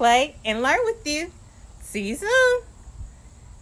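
A young woman speaks up close with animation, her voice rising in pitch.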